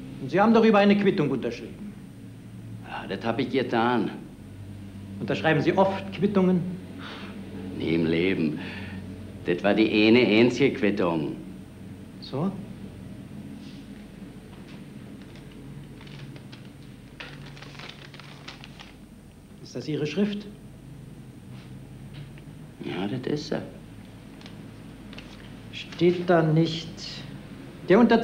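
An elderly man speaks sternly and calmly.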